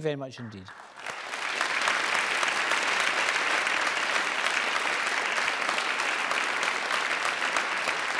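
A large crowd applauds warmly.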